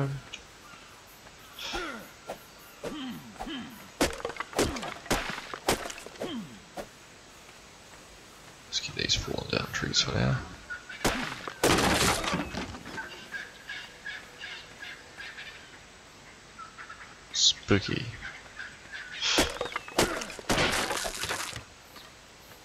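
A stone hatchet chops and thuds against wood.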